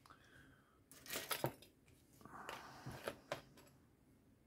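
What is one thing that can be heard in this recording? Metal tools clatter lightly as they are set down on a mat.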